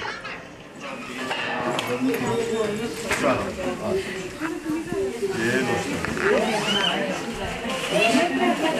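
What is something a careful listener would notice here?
A group of women sing together nearby.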